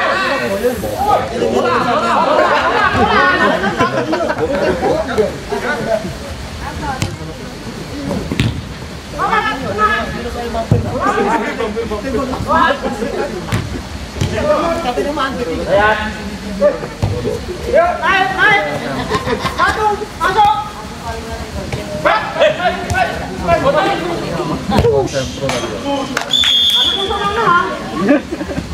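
Young men shout and call to each other across a pitch.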